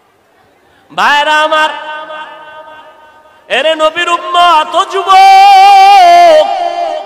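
A man chants loudly in long melodic tones through a loudspeaker.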